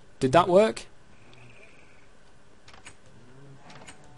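A wooden door clicks open.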